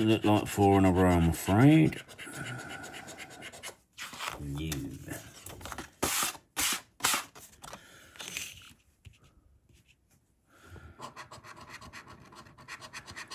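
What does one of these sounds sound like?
A coin scratches across a paper card.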